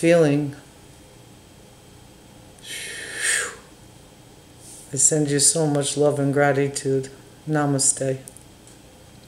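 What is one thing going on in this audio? An older woman speaks calmly and close by, with pauses.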